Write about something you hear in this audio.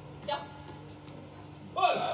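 A racket strikes a shuttlecock with a crisp pop.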